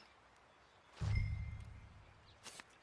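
A metal can thuds down onto the ground.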